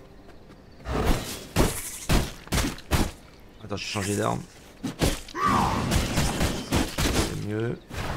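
Blades swish and strike in a fight.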